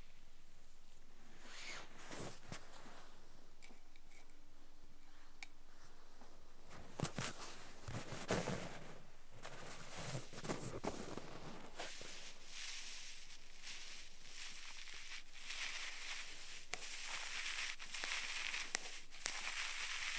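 Soft scratching and rubbing sound very close to the microphone.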